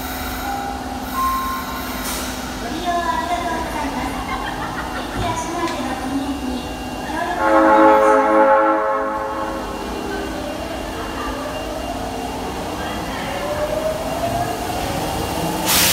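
A train rolls slowly into an echoing underground station.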